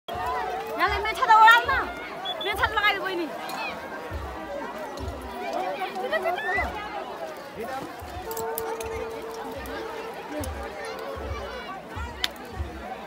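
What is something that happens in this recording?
Rain patters on umbrellas.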